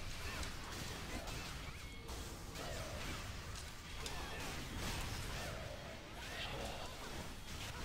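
Game spell effects whoosh and clash during a battle.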